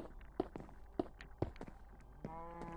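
Stone blocks crack and break with short clicks.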